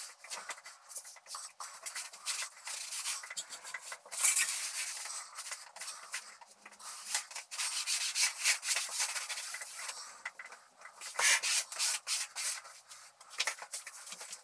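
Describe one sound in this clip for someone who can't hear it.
Hands and a cloth rub and rustle over paper on a wall.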